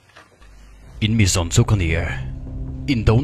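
A man speaks in a deep, menacing voice.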